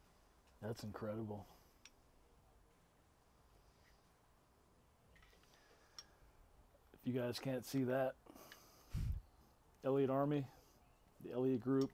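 A man speaks calmly, close to a microphone, in short bursts.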